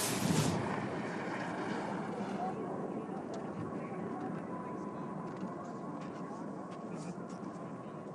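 Skis scrape and hiss over hard snow at speed.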